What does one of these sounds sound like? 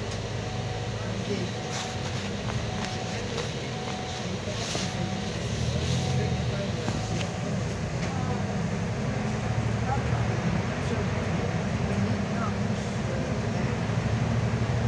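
The bus interior rattles and clicks over bumps.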